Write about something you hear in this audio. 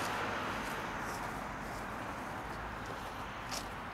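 Footsteps swish softly through grass.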